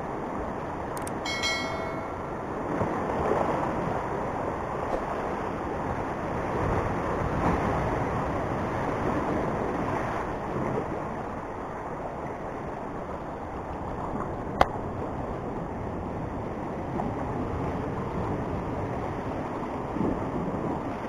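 Waves crash and churn against rocks below, with a steady rushing roar.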